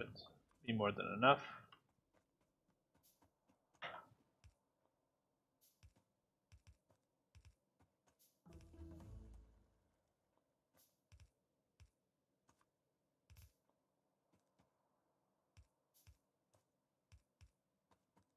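Short soft clicks sound now and then as things are placed.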